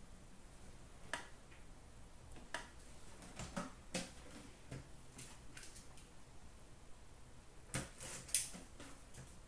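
Cardboard boxes tap and knock as they are set down on glass.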